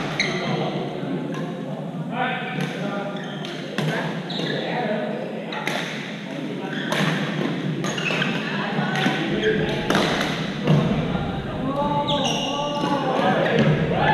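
Sneakers squeak on a floor.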